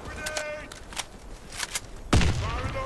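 A rifle magazine clicks out and back in during a reload.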